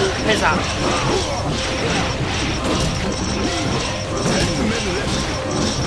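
Swords slash and whoosh rapidly.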